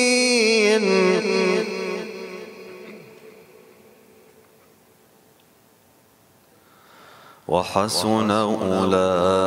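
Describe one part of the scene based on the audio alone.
A young man chants in a melodic, drawn-out voice through a microphone, with a long echoing fade.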